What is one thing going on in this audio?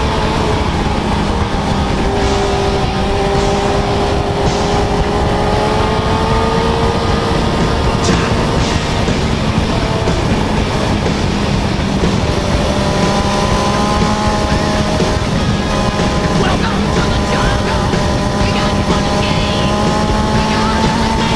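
A motorcycle engine hums steadily at speed, rising and falling in pitch.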